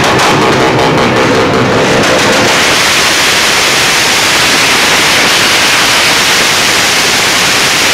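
A motorcycle engine revs loudly and roars at high speed.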